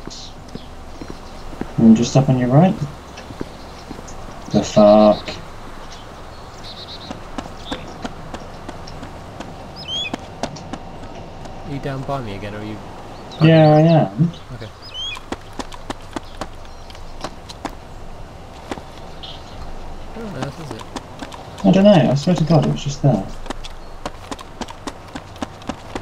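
Footsteps tap on concrete.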